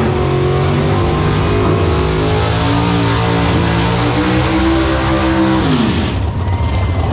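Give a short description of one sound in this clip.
A drag racing engine revs loudly and rises in pitch.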